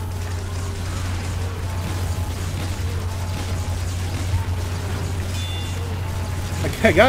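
A heavy machine gun fires in a rapid, rattling stream.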